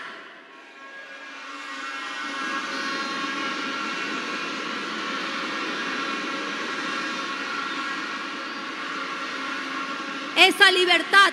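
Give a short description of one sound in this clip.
A large crowd cheers and chants.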